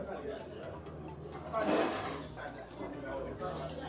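A man slurps noodles loudly.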